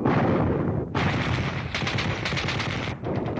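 A large artillery gun fires with a deep boom.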